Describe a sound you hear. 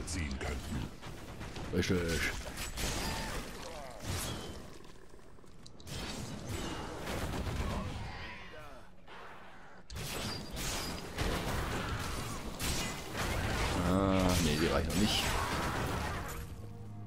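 Weapons clash and spells burst in a fast fight, with thumps and crackles.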